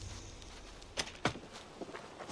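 A wooden gate clanks open.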